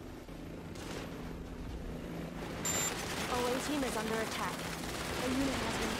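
Laser weapons fire in short bursts.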